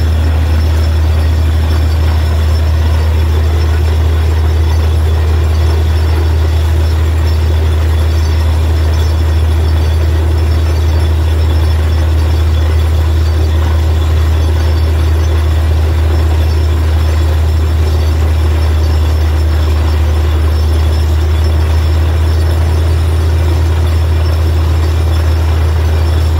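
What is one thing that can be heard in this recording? A drilling rig's engine drones loudly and steadily.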